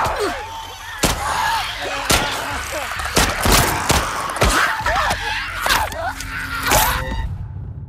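Heavy blows thud and smack in a close, violent struggle.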